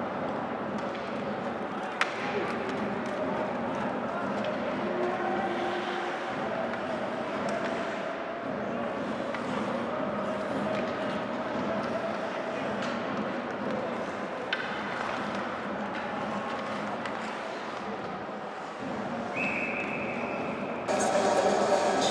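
A crowd chants and cheers in a large echoing arena.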